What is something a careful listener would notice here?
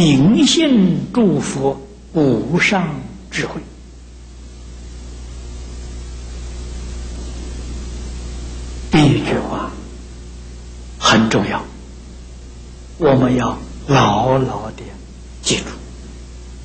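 An elderly man speaks calmly and slowly through a microphone, with long pauses.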